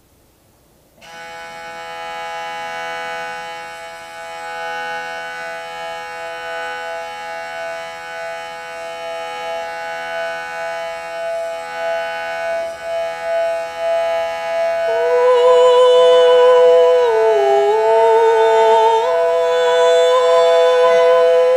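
A singing bowl rings with a steady, shimmering hum as its rim is rubbed.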